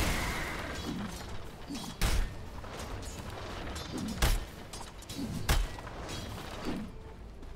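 Fighting sounds from a video game thud and clash.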